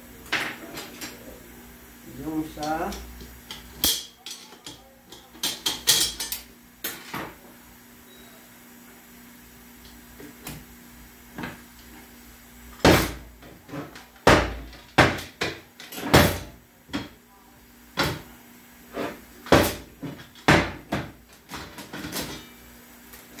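Metal gear parts clink and clatter as they are handled.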